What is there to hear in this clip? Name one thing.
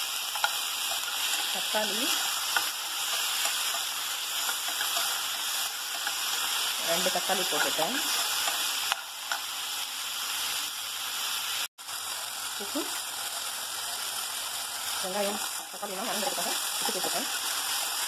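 A spoon stirs and scrapes food in a pot.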